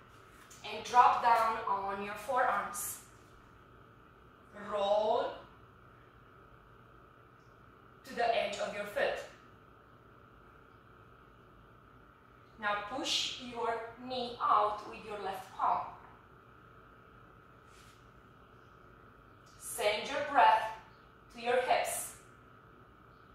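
A woman speaks calmly and clearly through a close microphone, in short phrases with pauses.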